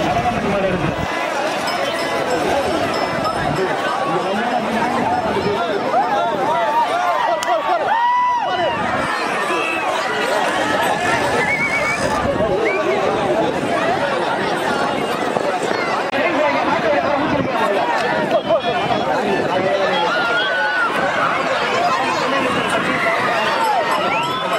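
A large outdoor crowd shouts and cheers.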